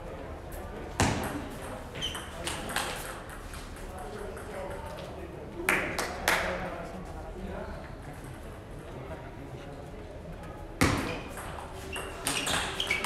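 A table tennis ball clicks sharply back and forth off paddles and a table in an echoing hall.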